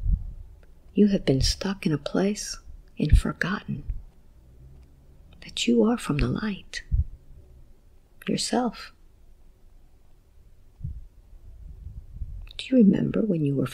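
A woman speaks calmly and softly close to a microphone, in short phrases with pauses.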